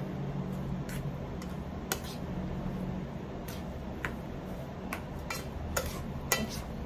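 A plastic paddle scrapes and taps against the inside of a pot of rice.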